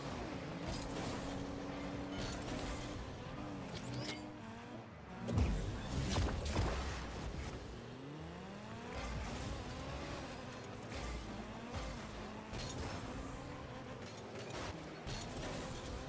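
A ball is struck with loud thuds.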